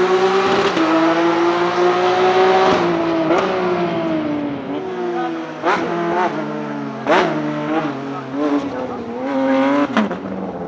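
A racing car engine roars loudly at high revs.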